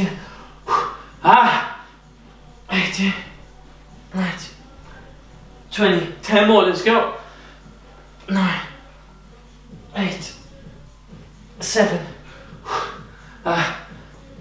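A man talks in short, breathy bursts close by.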